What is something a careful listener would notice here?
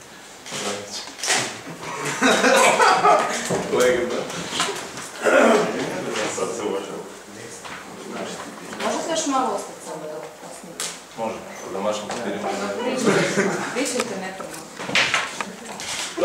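Several men laugh.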